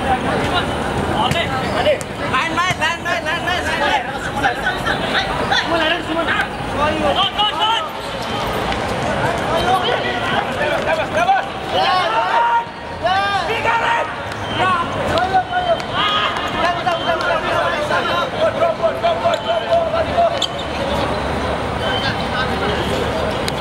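Spectators chatter nearby.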